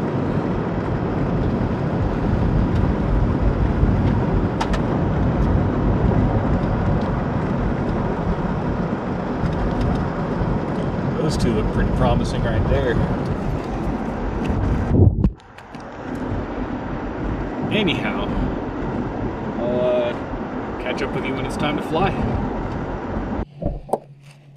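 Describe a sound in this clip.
A car engine hums steadily with road noise inside the cab.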